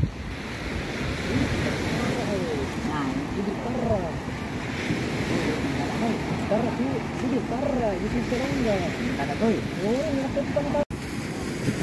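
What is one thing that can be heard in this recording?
A woman talks nearby in a calm voice.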